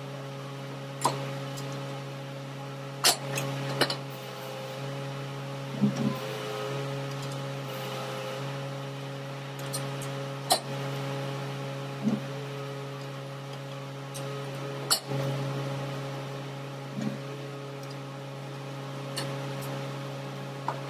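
Metal tools clank sharply against metal now and then.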